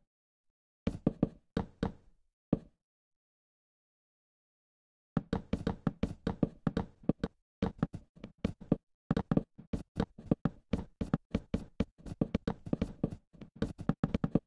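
Wooden blocks are placed one after another with quick, soft knocks.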